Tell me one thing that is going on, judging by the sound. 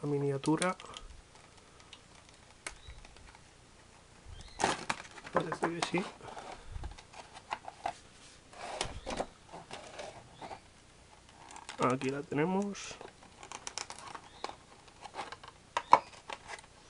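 Thin plastic packaging crinkles and crackles.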